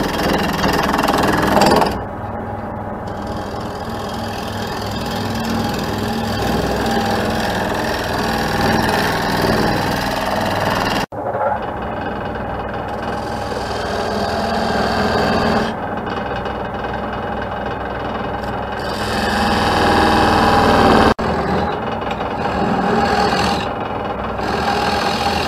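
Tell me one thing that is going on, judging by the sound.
A wood lathe hums as it spins steadily.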